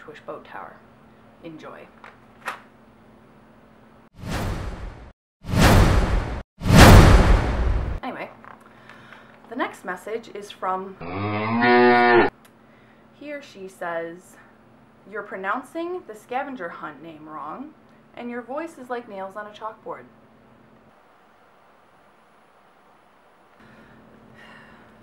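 A young woman talks close to the microphone, reading out and speaking with animation.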